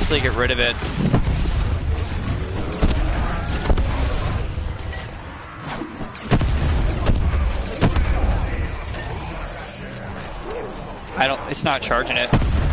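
A gun fires loud shots in bursts.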